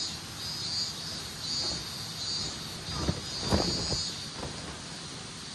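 Heavy canvas rustles and flaps as it is shaken out.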